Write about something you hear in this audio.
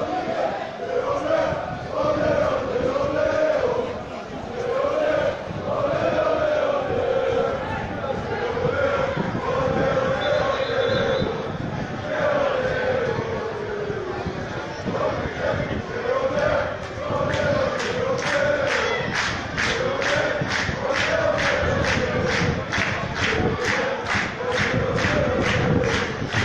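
A large crowd of fans chants and sings loudly in an open stadium.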